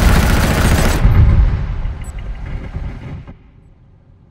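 A heavy explosion booms, then its rumble fades away.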